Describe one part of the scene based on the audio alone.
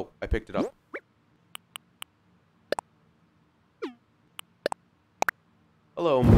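Short menu blips and clicks sound.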